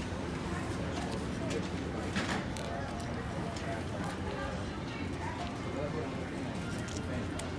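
A small plastic buckle rattles and clicks in a baby's hands.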